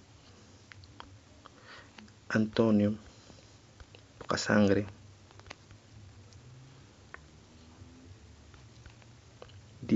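Keys on a phone's touch keyboard tap and click softly.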